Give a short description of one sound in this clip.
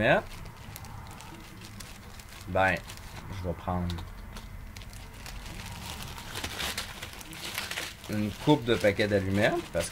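A plastic bag crinkles in someone's hands.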